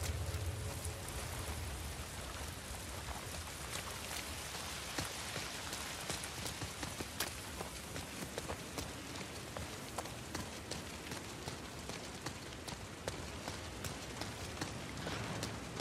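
Footsteps splash quickly through puddles.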